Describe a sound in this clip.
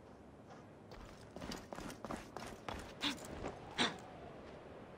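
Hands and feet scrape and thud while climbing a stone wall.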